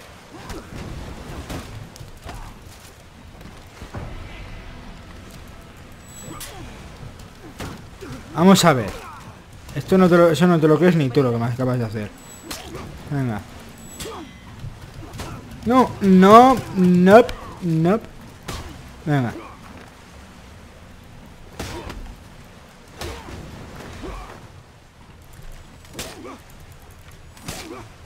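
Swords clash and clang.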